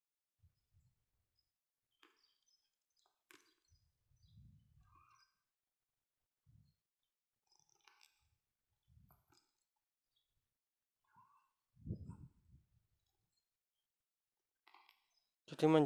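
Thread is pulled through leather with soft rasps and tugs.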